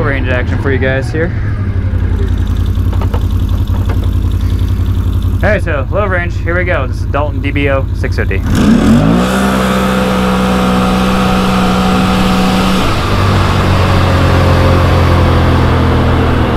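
An all-terrain vehicle engine idles with a low rumble, then revs up and drones steadily as it drives.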